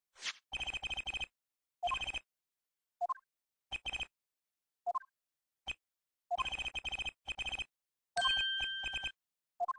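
Quick electronic blips chatter in bursts as text is typed out.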